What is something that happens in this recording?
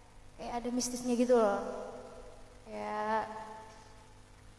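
A young woman sings close to a microphone in short phrases.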